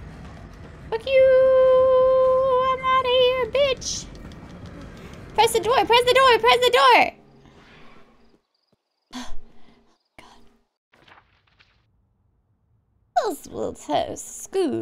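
A young woman talks and squeals with animation into a close microphone.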